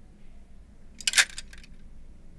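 A plastic clothes hanger clacks sharply against a wooden rail.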